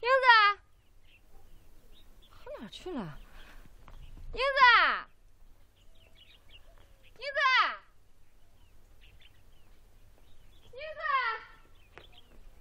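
A woman calls out loudly, her voice echoing outdoors.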